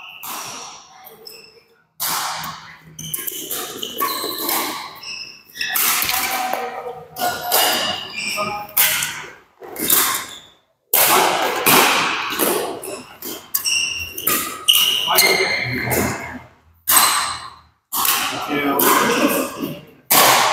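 Shoes squeak on a hard court floor in a large echoing hall.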